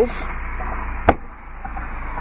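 A trunk floor cover drops shut with a thud.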